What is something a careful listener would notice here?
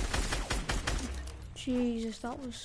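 Rapid gunshots fire close by.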